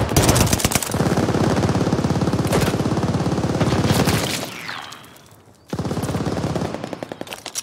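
A machine gun fires rapid bursts at close range.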